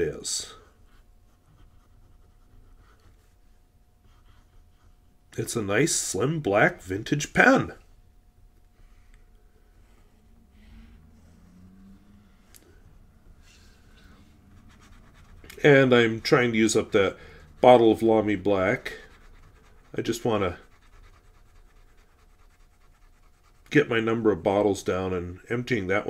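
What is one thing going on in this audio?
A fountain pen scratches across paper.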